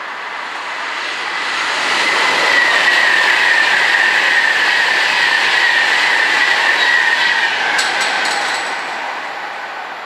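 A high-speed train rushes past with a roar that swells and then fades.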